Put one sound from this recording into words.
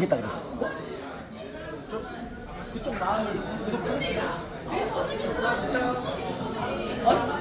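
A second young woman laughs and chats close by.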